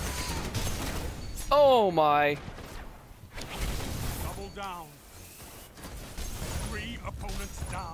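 An electric blade crackles and slashes in a video game fight.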